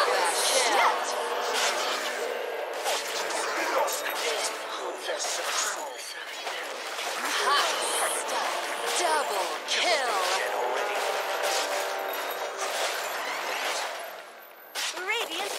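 Spells and weapon hits crackle and clash in a fight.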